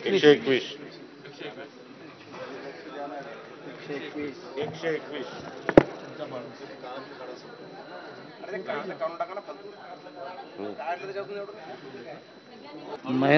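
Many men talk over one another in a large echoing hall.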